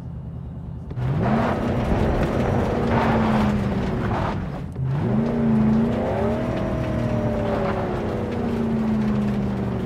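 A car engine revs up and rises in pitch as the car drives off.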